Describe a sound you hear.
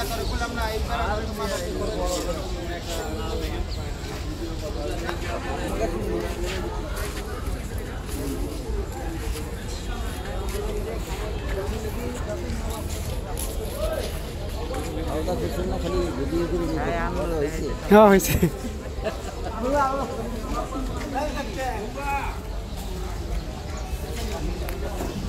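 Several men talk nearby over the murmur of an outdoor crowd.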